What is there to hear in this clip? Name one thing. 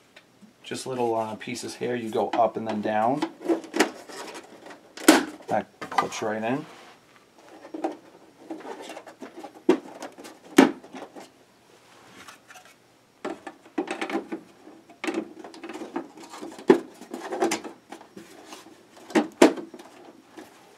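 Plastic toy parts click and knock as they are handled.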